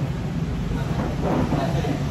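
A young man laughs softly.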